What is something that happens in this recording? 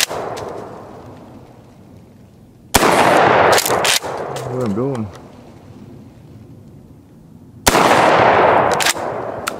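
A shotgun fires loud booming shots that echo outdoors.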